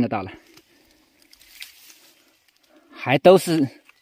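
Dry leaves rustle as a hand pulls a mushroom from the ground.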